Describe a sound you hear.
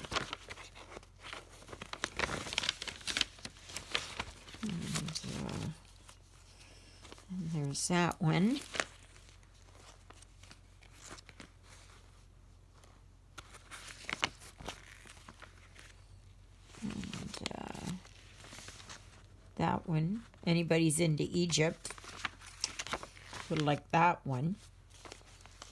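Paper pages rustle and flip as a magazine is leafed through close by.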